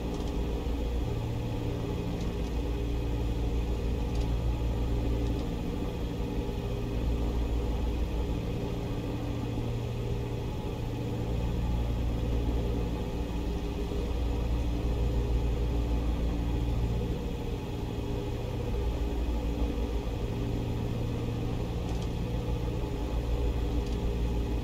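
A small plane's propeller engine drones steadily, rising and falling slightly.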